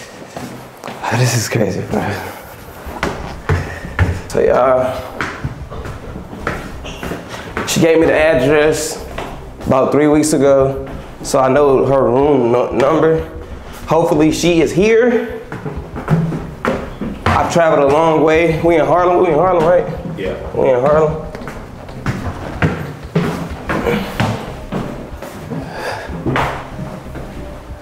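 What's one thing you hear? Footsteps climb a stairwell.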